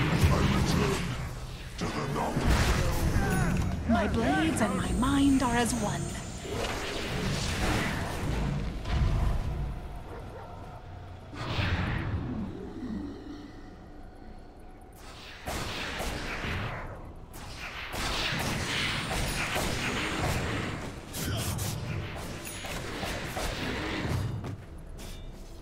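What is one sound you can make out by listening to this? Spell blasts and weapon clashes burst and crackle in a game battle.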